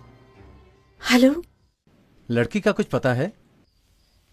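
A middle-aged woman speaks anxiously into a telephone.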